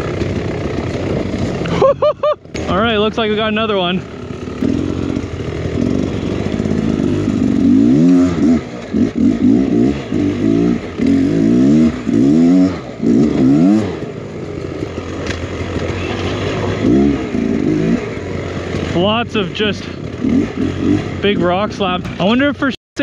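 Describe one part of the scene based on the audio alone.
A dirt bike engine revs and sputters up close, rising and falling in pitch.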